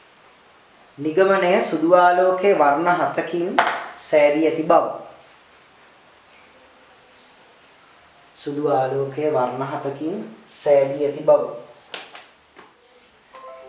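A man speaks calmly nearby, explaining.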